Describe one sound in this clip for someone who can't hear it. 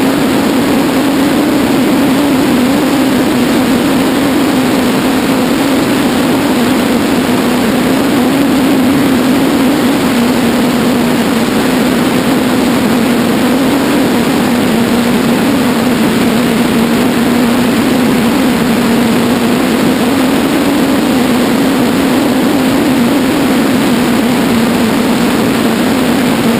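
A tow plane's engine drones steadily ahead.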